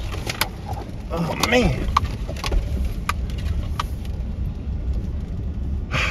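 Tyres crunch and rattle over a gravel road.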